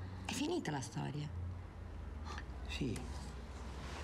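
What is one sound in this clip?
A man speaks quietly and tensely, close by.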